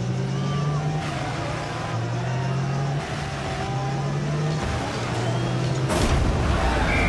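A car engine hums steadily, rising and falling in pitch.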